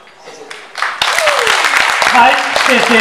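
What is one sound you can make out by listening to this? A woman claps her hands.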